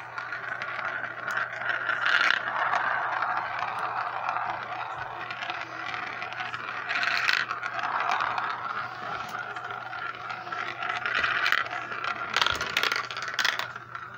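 Marbles roll and rattle around inside a spinning plastic toy.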